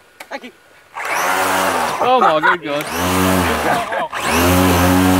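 A toy car's electric motor whines and revs in bursts close by.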